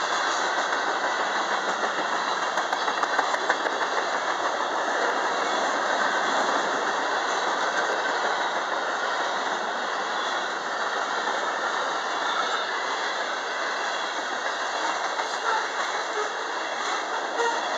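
Steel wheels clatter and squeal on the rails.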